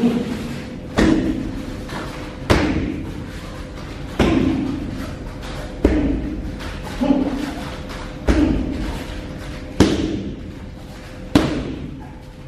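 Kicks and punches thud hard against padded mitts at a steady pace, ringing in a small room.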